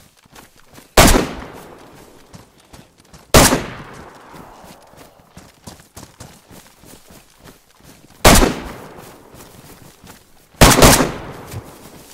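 Loud gunshots crack and echo across open ground.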